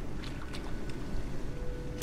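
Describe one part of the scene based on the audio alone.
Water pours and splashes onto a floor.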